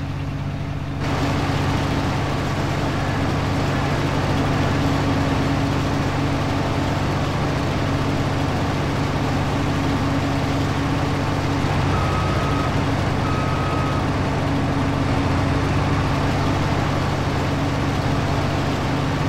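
A harvester engine roars loudly from outside as the machine chops through crops.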